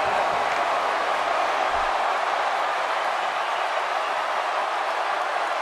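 A large crowd roars and cheers steadily in a big arena.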